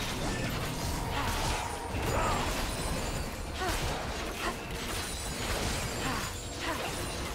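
Magic spells crackle and burst in a video game fight.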